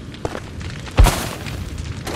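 A heavy thud of a man landing after a jump.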